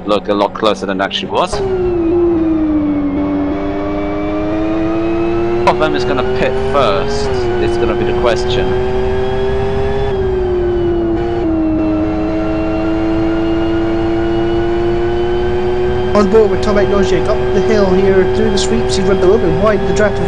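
A racing car engine drones steadily, rising and falling in pitch as it shifts gears.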